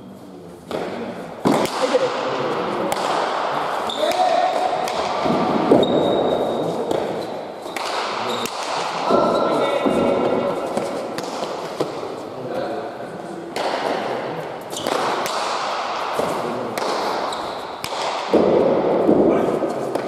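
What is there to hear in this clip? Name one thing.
Shoes squeak on a hard floor as players run.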